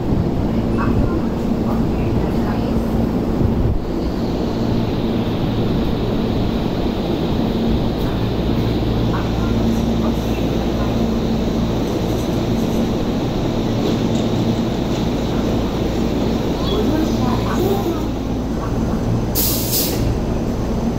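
A train moves slowly along the platform with a low, steady rumble.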